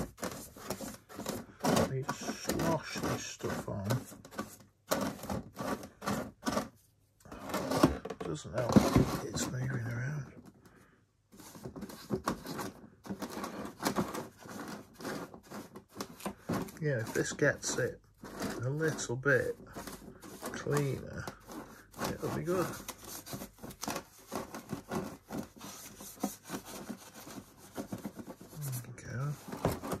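A stiff brush scrubs and scratches against a hard plastic shell.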